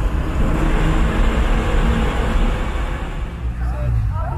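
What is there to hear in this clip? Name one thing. A car engine drones steadily while driving through a tunnel.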